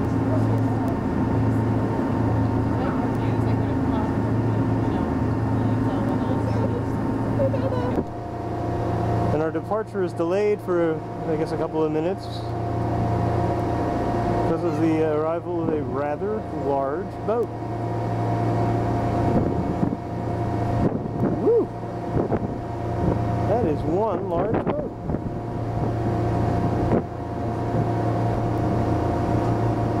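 A boat engine hums steadily and low throughout.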